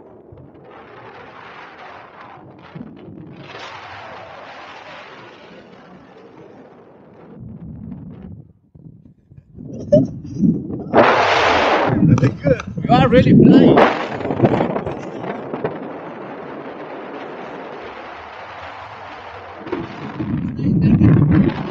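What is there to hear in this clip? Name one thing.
Wind rushes steadily past a close microphone.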